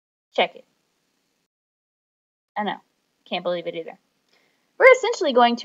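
A woman speaks calmly into a microphone in short phrases with pauses.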